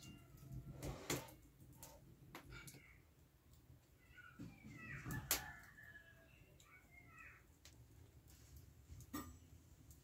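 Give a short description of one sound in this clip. Wood fire crackles in a stove.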